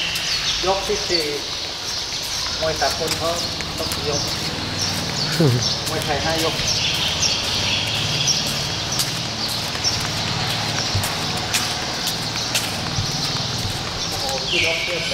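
Sandals slap and shuffle on a hard floor as several people walk.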